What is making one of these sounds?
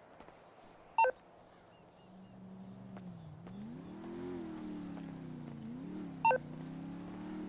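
A phone gives a short electronic beep.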